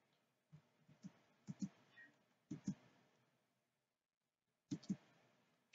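Soft footsteps tap in short pairs.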